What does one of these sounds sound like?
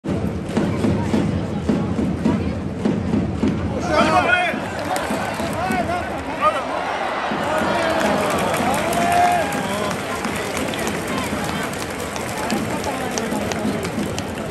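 A large stadium crowd cheers and chants throughout, echoing around the stands.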